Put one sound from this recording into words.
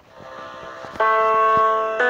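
Piano notes play through a small speaker.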